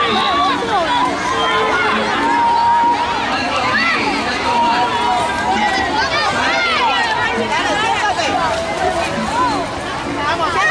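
Many children shout and scream excitedly outdoors.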